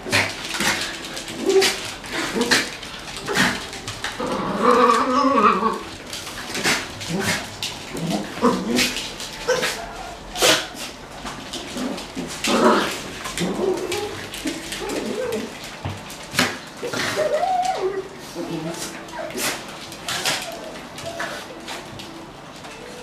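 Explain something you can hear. Dogs' claws click and patter on a hard floor.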